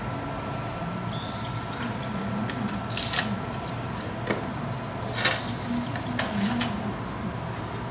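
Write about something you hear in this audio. A man knocks plastic crates about as he moves them.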